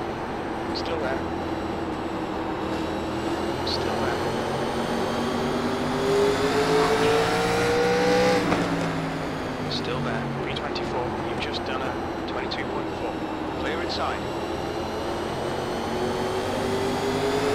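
A race car engine roars steadily, rising and falling in pitch as it shifts.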